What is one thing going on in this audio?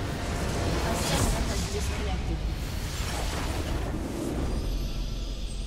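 A structure explodes with a loud boom.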